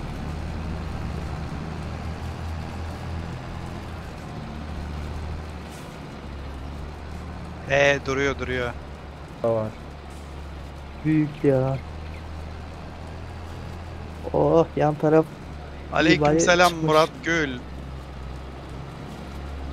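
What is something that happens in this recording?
A harvester rattles as it digs up crops.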